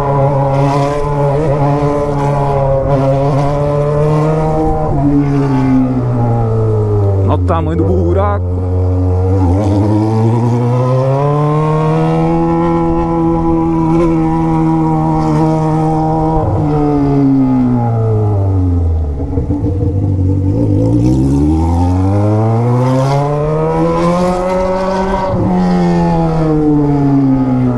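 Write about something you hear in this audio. A motorcycle engine hums close by, its pitch rising and falling as the rider speeds up and slows down.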